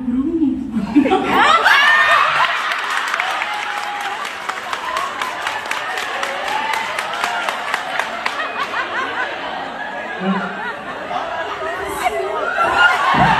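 A crowd screams and cheers loudly.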